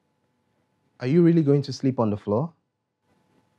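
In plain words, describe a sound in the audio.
A man speaks briefly and close by.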